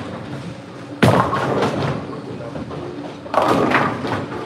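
A bowling ball thuds down and rolls along a wooden lane.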